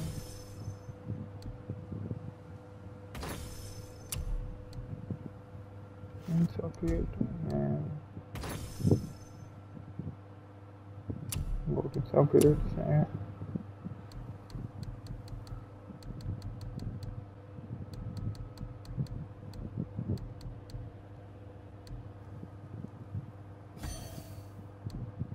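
Short whooshes sound as menus open and close.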